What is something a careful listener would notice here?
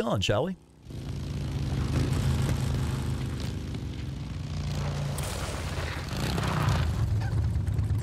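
Motorcycle engines rumble steadily.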